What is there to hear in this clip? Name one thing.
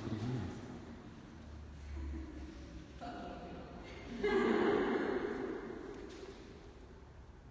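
A woman speaks aloud in a large echoing hall.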